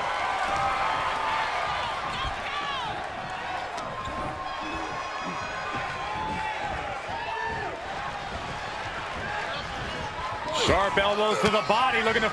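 A large crowd cheers in an echoing arena.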